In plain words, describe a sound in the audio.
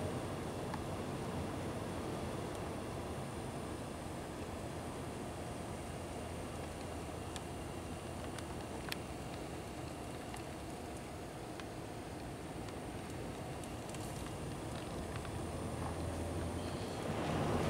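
Tyres rumble and hiss on a slushy road.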